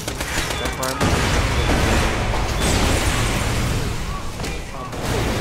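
Loud explosions boom and rumble in a video game.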